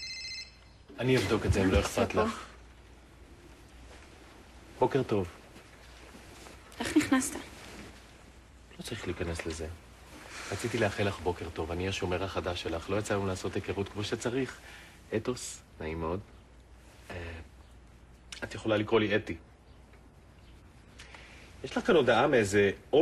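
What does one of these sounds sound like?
A man speaks softly and warmly up close.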